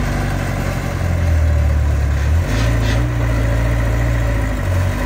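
An excavator's diesel engine rumbles and revs steadily close by.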